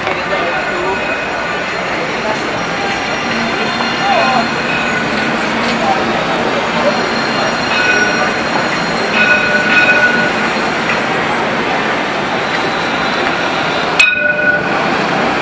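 A tram hums and rumbles past close by.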